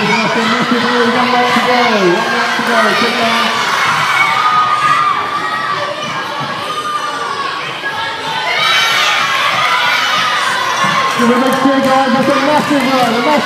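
A crowd of children shouts and cheers in a large echoing hall.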